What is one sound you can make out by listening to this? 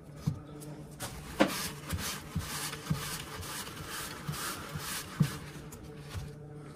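A cloth rubs and wipes against a small knife.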